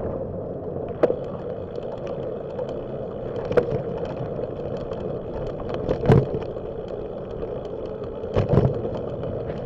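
A bicycle rattles over bumps in the path.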